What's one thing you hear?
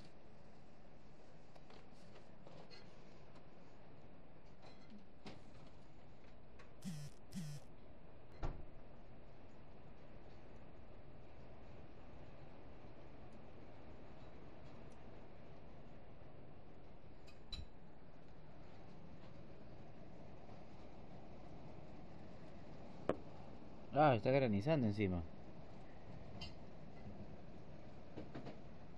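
Rain falls outside, heard through a window.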